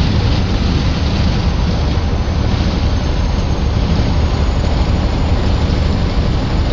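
Tyres roar steadily on a highway from inside a moving vehicle.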